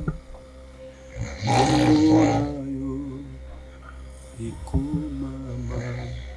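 A man speaks in a raised voice nearby.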